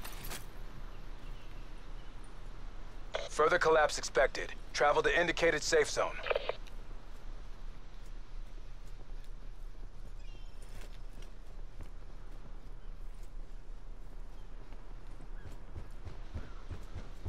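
Footsteps crunch and tap steadily on dirt and wooden boards.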